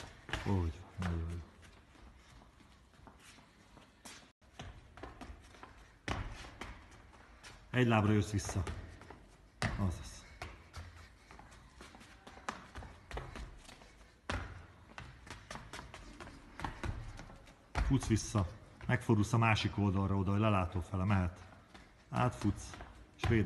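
Feet thud and skip on a hard floor in a large echoing hall.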